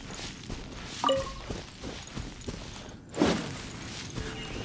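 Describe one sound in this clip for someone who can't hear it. A sword slashes with a sharp whoosh.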